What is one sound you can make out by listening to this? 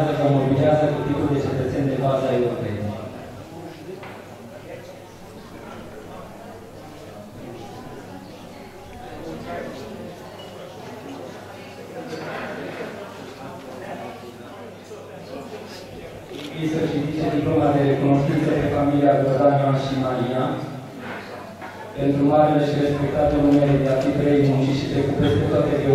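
A man speaks formally into a microphone over loudspeakers in an echoing hall.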